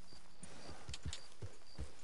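A horse's hooves thud softly on grass as it walks.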